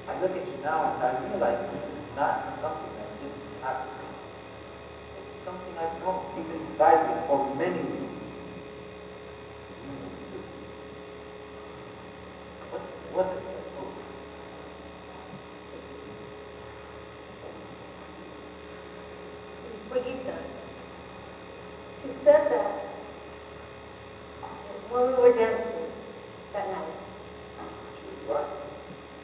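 A young woman speaks on a stage, heard from a distance in a large hall.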